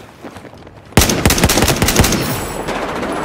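A rifle fires loud sharp shots.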